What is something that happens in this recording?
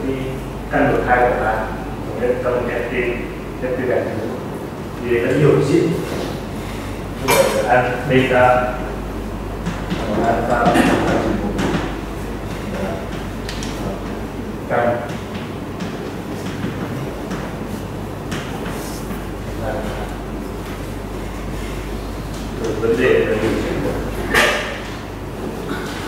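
A man lectures with pauses.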